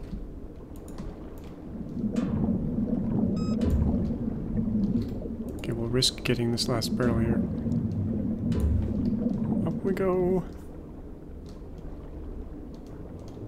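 Water rumbles in a low, muffled drone underwater.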